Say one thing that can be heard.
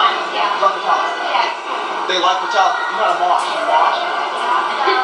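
Several people chatter in the background of a busy room.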